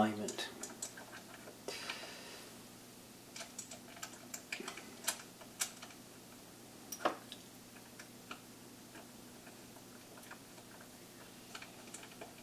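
Small metal parts click and tap against a frame.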